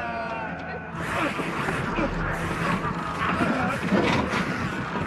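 Men grapple and thump against a door.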